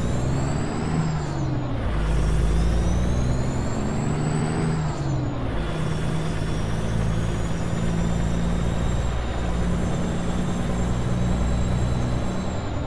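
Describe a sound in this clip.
A truck's turbo whistles high as the engine revs.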